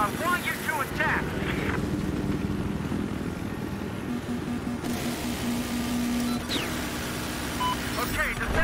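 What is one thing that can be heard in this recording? A helicopter engine roars steadily.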